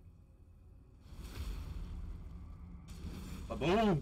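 Fire bursts with a loud roaring whoosh.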